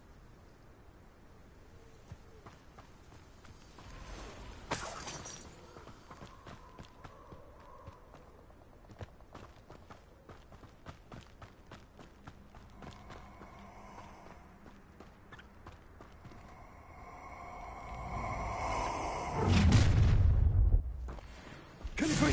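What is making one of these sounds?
Footsteps crunch quickly on a gravel path.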